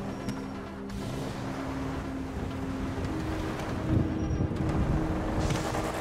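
A car engine revs as a car drives off.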